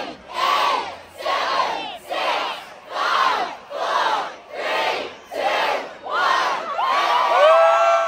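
A large crowd chants together in loud rhythmic bursts outdoors.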